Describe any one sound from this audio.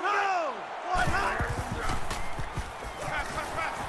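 Football players crash together in a tackle.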